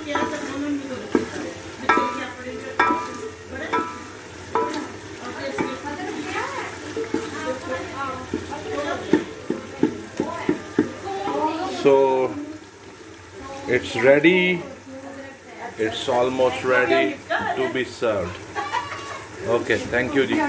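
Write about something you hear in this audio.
A wooden spoon scrapes and stirs thick food in a metal pot.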